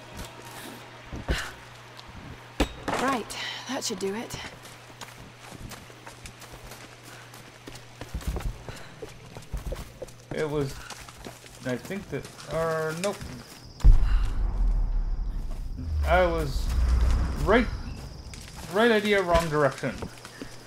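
Footsteps crunch on leaves and dirt.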